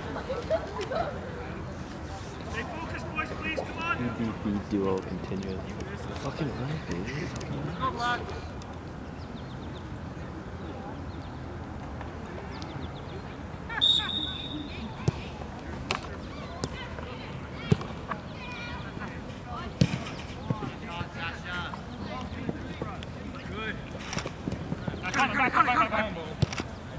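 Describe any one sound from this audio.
Young men shout across an open field, some way off.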